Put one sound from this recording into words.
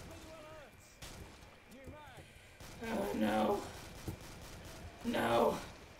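A shotgun fires several loud blasts.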